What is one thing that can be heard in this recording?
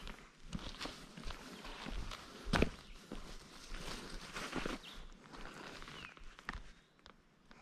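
Shoes scuff and tap on bare rock in steady footsteps.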